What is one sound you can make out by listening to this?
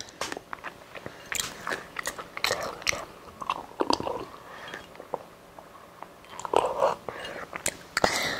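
A ceramic cup clinks and scrapes close to a microphone.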